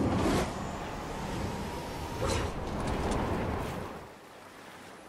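Wind rushes past steadily.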